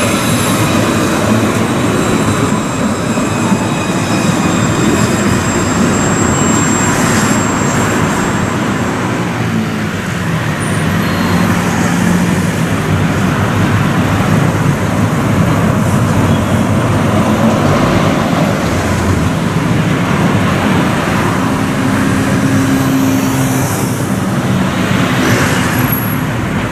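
A tram rolls past close by on rails.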